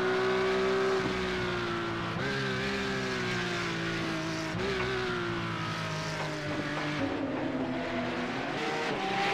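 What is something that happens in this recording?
A racing car engine roars loudly, dropping and rising in pitch as it shifts gears.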